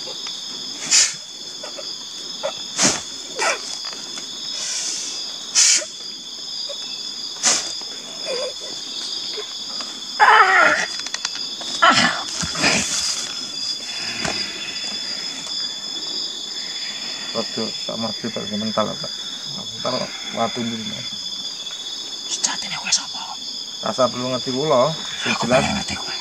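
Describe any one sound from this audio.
A young man groans and cries out nearby.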